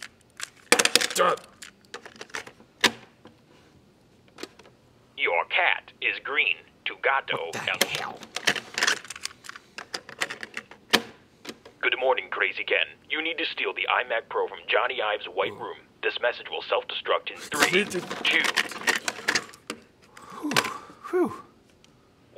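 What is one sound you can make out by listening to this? A cassette recorder's buttons click and its lid snaps.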